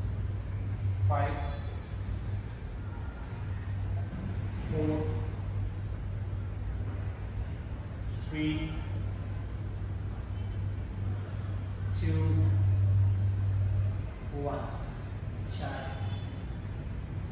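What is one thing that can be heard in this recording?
A man calls out short instructions in an echoing room.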